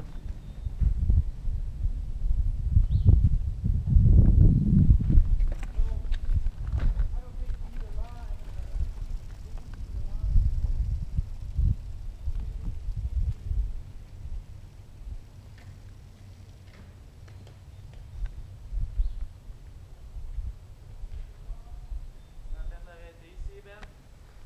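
Bike tyres rumble and clatter over rough rocky ground.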